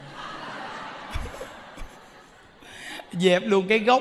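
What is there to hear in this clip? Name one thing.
A man laughs into a microphone.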